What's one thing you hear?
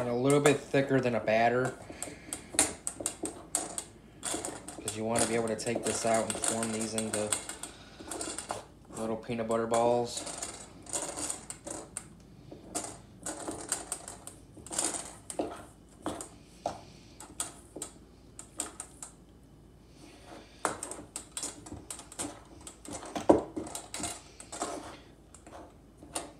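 A spoon scrapes and clinks against a bowl while stirring a thick mixture.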